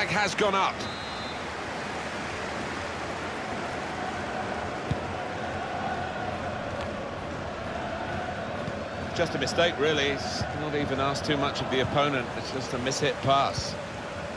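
A large crowd murmurs and roars steadily in a big stadium.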